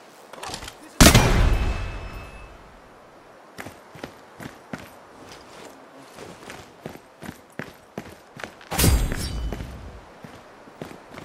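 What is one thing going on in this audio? A rifle fires a loud shot that echoes away.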